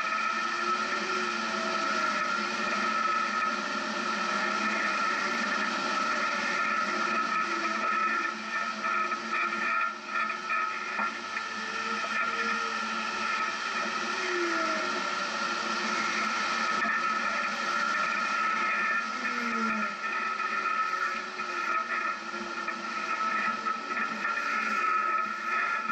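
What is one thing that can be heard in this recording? A vehicle's engine hums and revs as it climbs slowly.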